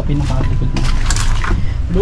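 Footsteps crunch on dry leaves.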